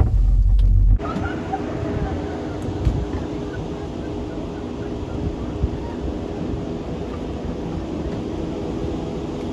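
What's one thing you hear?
A cable car cabin rattles slowly through a station.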